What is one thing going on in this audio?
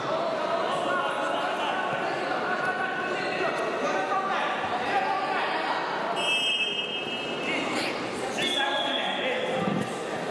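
Several men talk and call out in a large echoing hall.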